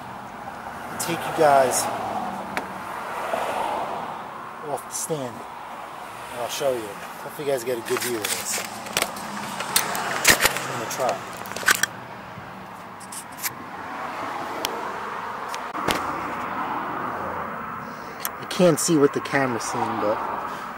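Metal parts click and clink as hands work on a small engine.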